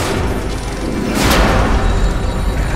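A metal gate slams shut with a loud clang.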